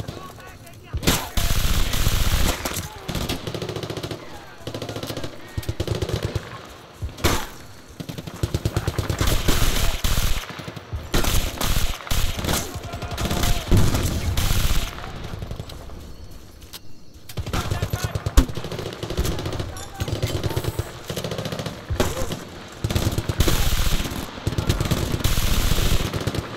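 A rifle fires rapid bursts of gunshots close by.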